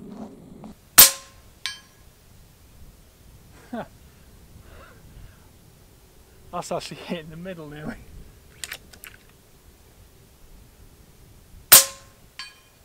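A rifle fires with a loud, sharp crack.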